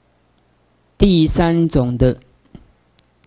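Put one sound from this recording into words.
An elderly woman speaks calmly and close to a microphone.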